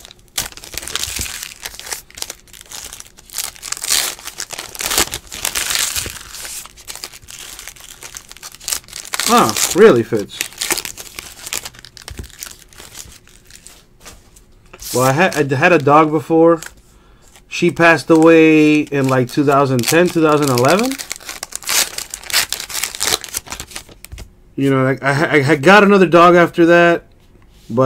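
Trading cards slide and tap against each other as they are stacked.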